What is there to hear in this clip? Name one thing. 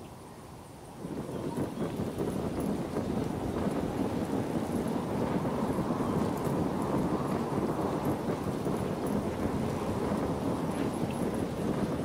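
Wind rushes steadily past while gliding through the air.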